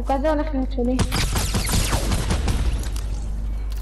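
Gunshots crack in a rapid burst.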